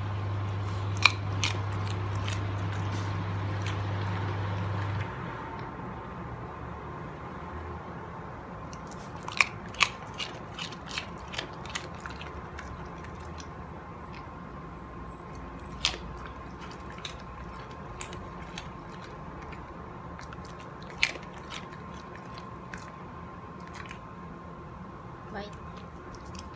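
A dog crunches and chews food close by.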